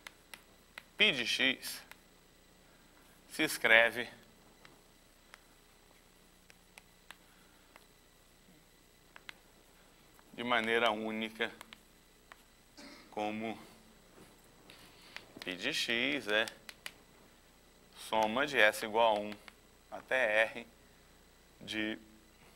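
A man speaks calmly in short bursts, as if lecturing.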